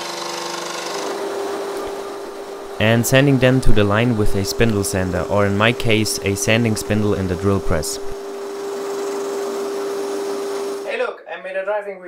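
A spindle sander whirs with a steady hum.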